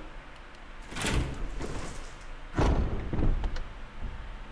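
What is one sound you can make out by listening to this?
Heavy wooden doors creak and open with a deep rumble.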